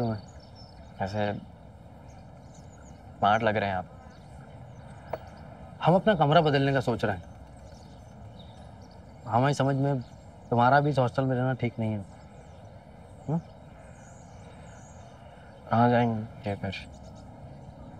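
A young man answers softly, close by.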